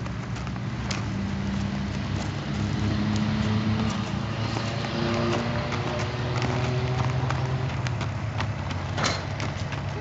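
Hooves crunch and clop on gravel as a horse walks.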